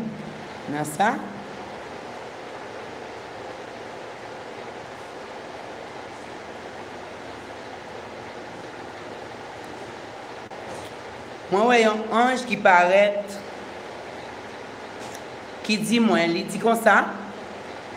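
A middle-aged woman sings close by in short phrases.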